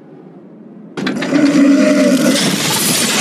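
A car engine roars loudly.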